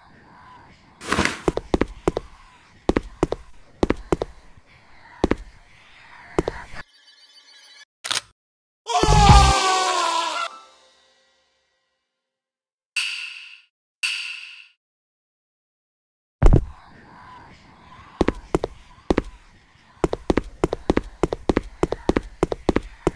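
Footsteps tread quickly over the ground.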